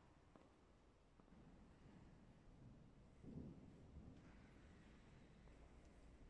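A man speaks quietly in a large echoing hall.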